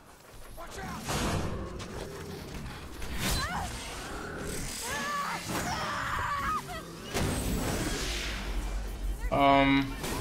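A metal robot clanks and stomps heavily.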